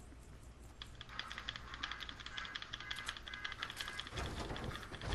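Footsteps patter quickly on the ground in a video game.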